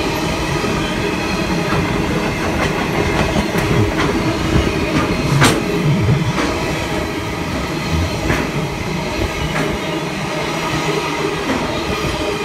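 A freight train rumbles steadily past on the tracks.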